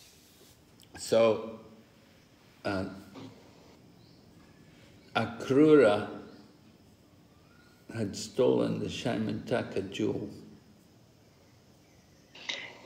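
An elderly man speaks calmly in short bursts, close by.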